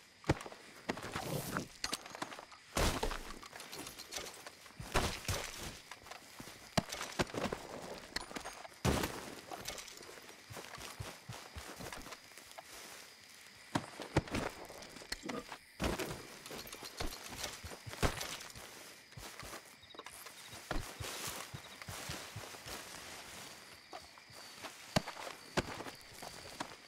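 Footsteps rustle through tall grass outdoors.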